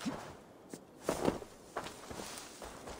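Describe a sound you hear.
Leafy plants rustle as someone pushes through them.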